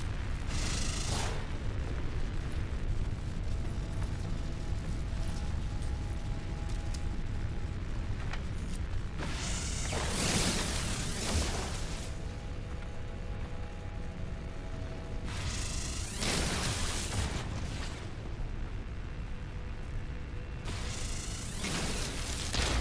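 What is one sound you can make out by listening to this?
A laser beam hisses and crackles in bursts.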